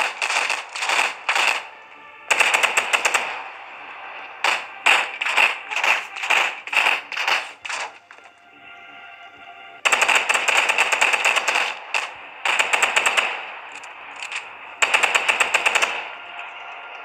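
Rapid gunfire bursts out in short volleys.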